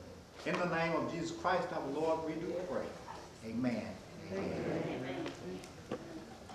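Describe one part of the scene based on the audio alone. An elderly man speaks calmly into a microphone in a room with some echo.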